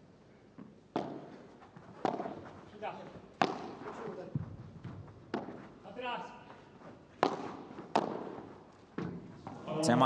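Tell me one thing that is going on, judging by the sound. Padel rackets strike a ball back and forth with sharp pops, echoing in a large hall.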